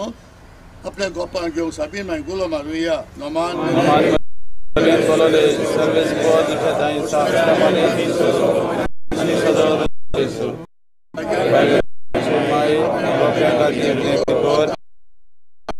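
A group of men sing a hymn together outdoors.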